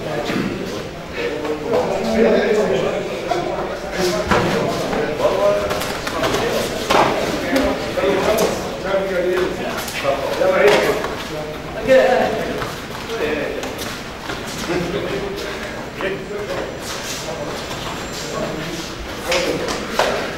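Bare feet shuffle and slap on a padded mat.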